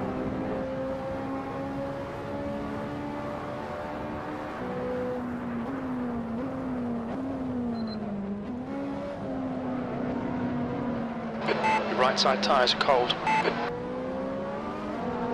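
A racing car engine drones steadily, its pitch rising and dropping as the gears change.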